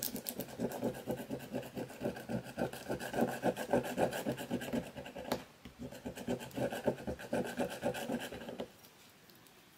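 A pen scratches rapidly across paper.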